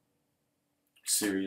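An elderly man speaks close to a microphone.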